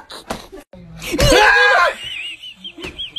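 A man laughs loudly close by.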